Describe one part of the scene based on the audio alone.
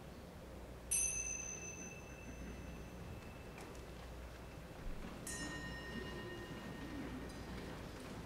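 A small bell rings out clearly and slowly fades.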